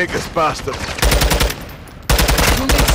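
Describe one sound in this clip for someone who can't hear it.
A rifle fires rapid bursts close by.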